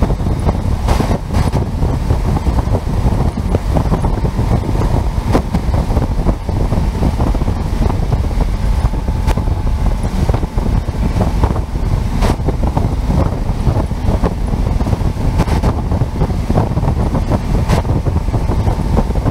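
Wind buffets the microphone loudly and steadily.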